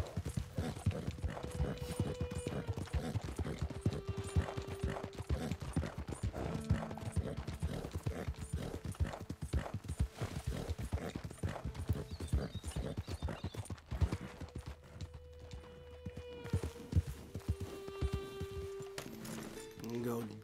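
A horse's hooves thud steadily on a dirt trail.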